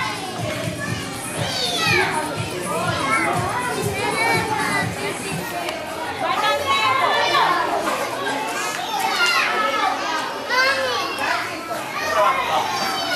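Young children chatter and call out in high voices nearby.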